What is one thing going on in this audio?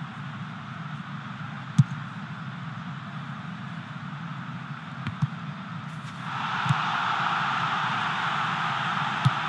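A stadium crowd roars steadily, swelling louder partway through.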